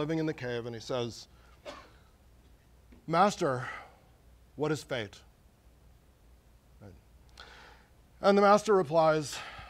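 A man lectures through a microphone in a large echoing hall, speaking in short phrases with pauses.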